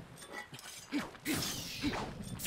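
A sword strikes with a sharp clash.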